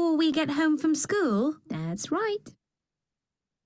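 A woman speaks brightly and with animation into a microphone.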